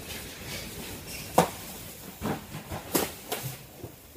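Cardboard boxes knock and rustle as they are handled.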